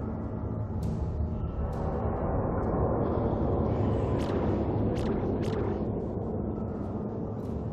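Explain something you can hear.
Short electronic clicks sound as a menu selection moves.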